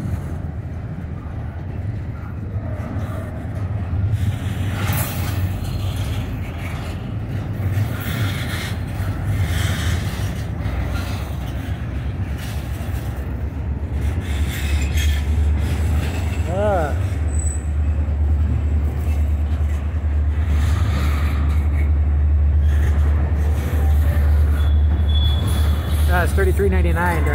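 Train wheels clatter and knock over the rail joints.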